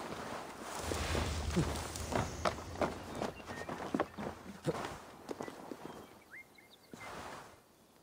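Boots scrape and thud on stone as a man scrambles up a wall.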